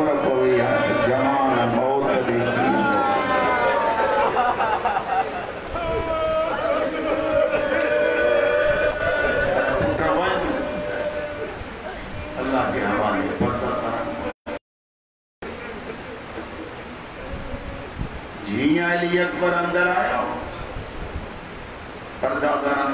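A man chants loudly and with feeling through a microphone and loudspeakers.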